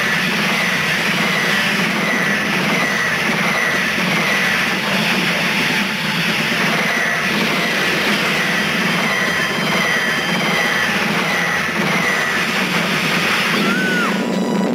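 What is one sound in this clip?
Rapid gunfire rattles continuously.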